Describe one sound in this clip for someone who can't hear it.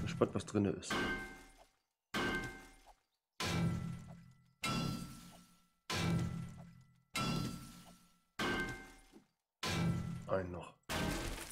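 A pickaxe strikes rock again and again with sharp, ringing knocks.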